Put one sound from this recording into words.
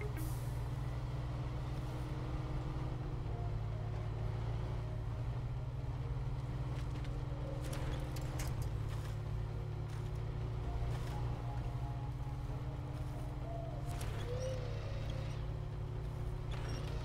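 Rocks and gravel crunch under the tyres.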